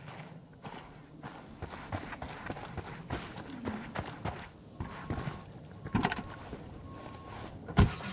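Footsteps crunch on gravel.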